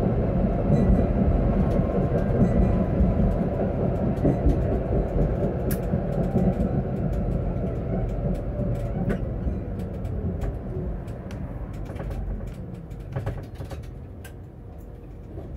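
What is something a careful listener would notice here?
A tram rumbles along its rails, slowing to a stop.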